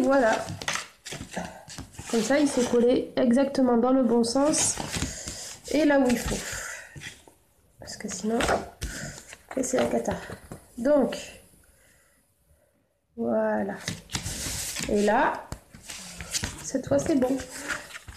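Paper rustles and slides on a table.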